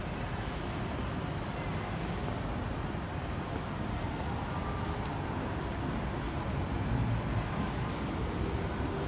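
Outdoor street noise with a steady low hum of a busy city.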